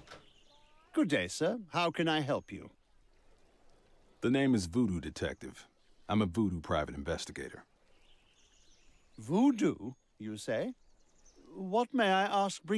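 An elderly man speaks politely and formally.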